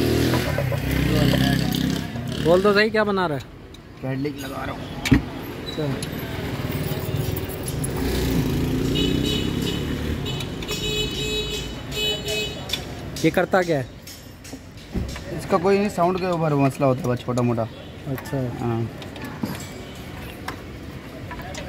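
A metal wrench clicks and clinks against engine parts.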